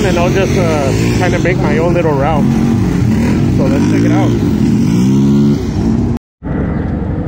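Several quad bike engines rev and whine up and down close by.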